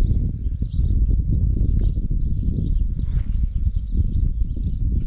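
A fishing line whizzes out briefly as a rod is cast.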